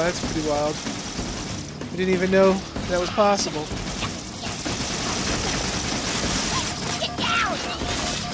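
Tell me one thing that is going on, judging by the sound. Energy weapons fire in rapid bursts with sharp electronic zaps.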